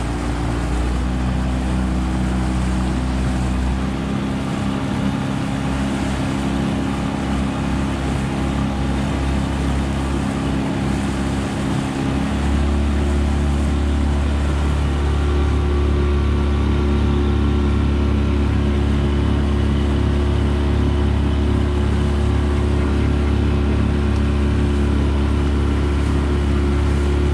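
An outboard motor drones steadily.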